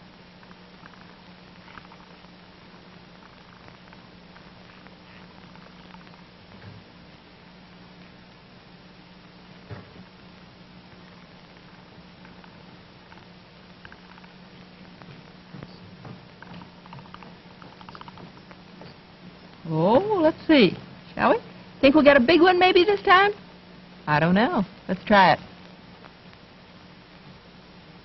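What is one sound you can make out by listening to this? Soap bubbles froth and pop softly from a pipe bowl.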